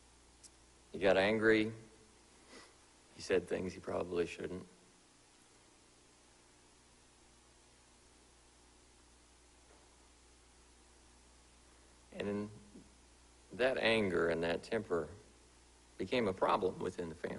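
A man speaks slowly and solemnly through a microphone, with long pauses.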